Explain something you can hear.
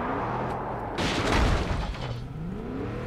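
A car crashes with a loud bang and scraping.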